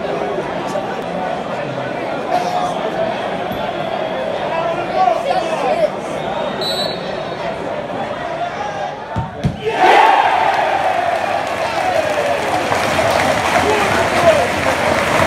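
A large stadium crowd sings and chants loudly outdoors.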